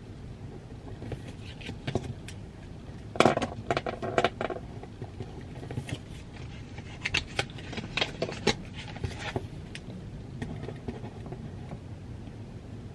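A pen scratches and taps on paper close by.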